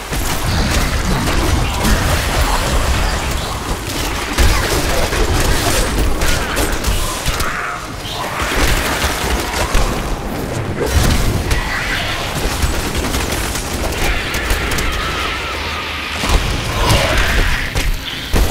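Weapons strike monsters with heavy thuds.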